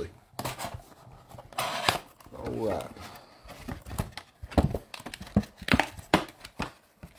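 Hands open the lid of a cardboard box, the cardboard scraping and tapping.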